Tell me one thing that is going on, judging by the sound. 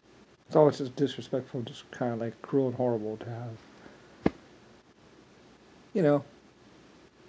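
A man speaks casually, close by.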